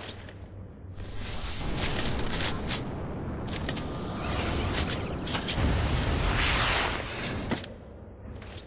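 A smoke grenade hisses with a rocket-like roar.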